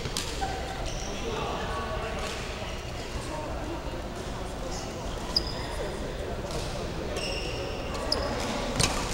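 Shoes squeak on the floor.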